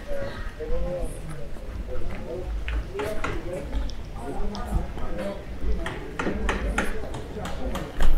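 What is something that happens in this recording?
Footsteps tap on stone paving outdoors.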